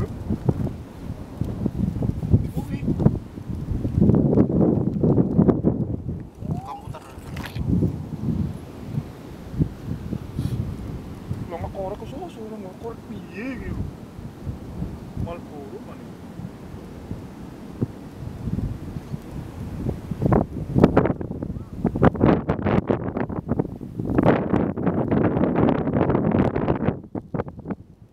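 Wind gusts and buffets loudly outdoors.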